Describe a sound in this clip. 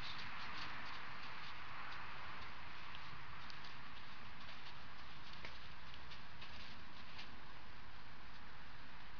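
Horse hooves thud softly on soft sand.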